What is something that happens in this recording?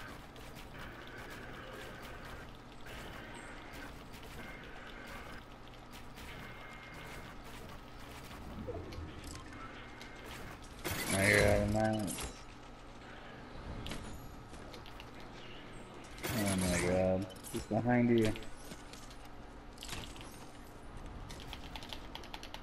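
Quick clicks and clacks of building pieces snapping into place sound in a video game.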